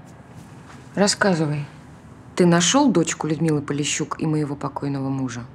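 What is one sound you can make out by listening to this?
A young man speaks tensely nearby.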